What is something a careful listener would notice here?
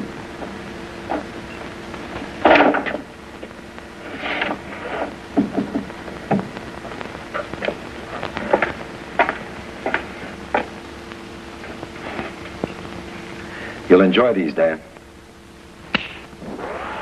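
Small metal clicks and knocks come as a film projector is threaded by hand.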